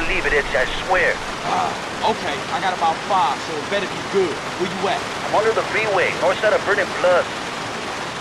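A man talks on a phone with animation, close by.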